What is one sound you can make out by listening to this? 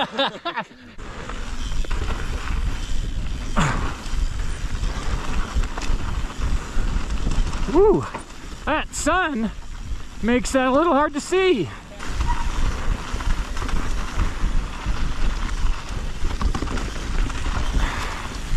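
Bike tyres crunch and rattle over a dirt trail.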